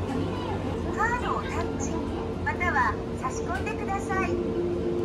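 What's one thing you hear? A woman speaks politely nearby.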